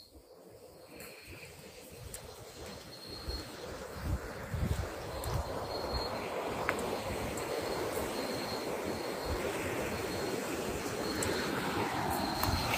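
Leaves and branches rustle as someone pushes through dense undergrowth.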